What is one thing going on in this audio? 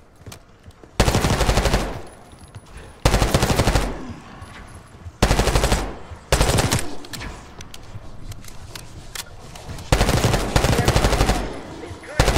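A rifle fires loud, rapid bursts.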